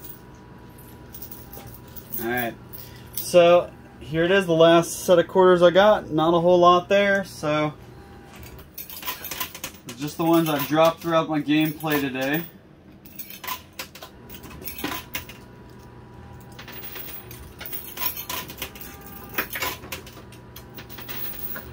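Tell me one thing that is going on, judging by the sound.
Coins clink and clatter as a machine pushes them across a tray.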